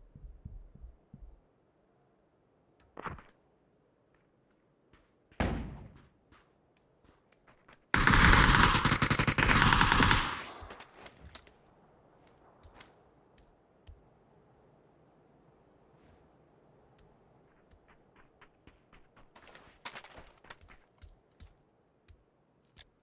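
Footsteps thud quickly across a hard floor.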